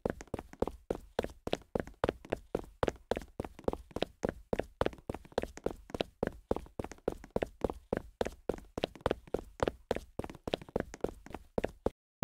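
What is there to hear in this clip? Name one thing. Quick footsteps patter steadily as a game character runs.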